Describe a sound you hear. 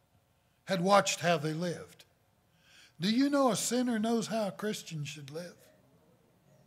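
An older man speaks with emphasis through a microphone in a large room.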